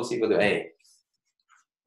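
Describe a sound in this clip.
A man speaks briefly and calmly, close to a microphone.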